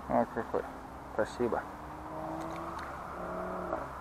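A fishing reel whirs as its handle is turned.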